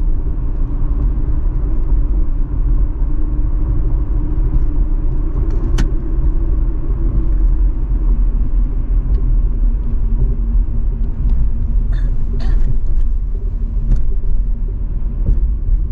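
Tyres rumble steadily over the road.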